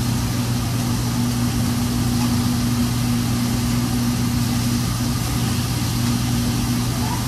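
An exhaust hood hums and roars steadily.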